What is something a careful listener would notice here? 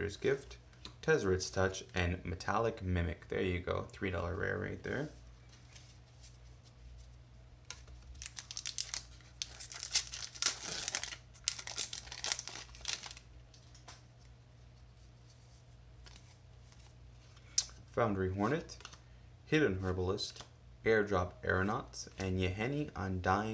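Playing cards slide and flick against each other.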